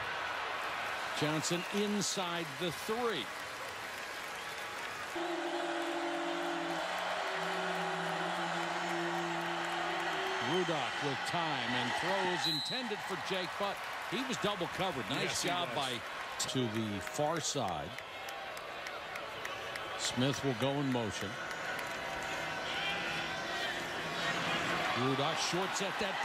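A large crowd cheers and roars in a big open stadium.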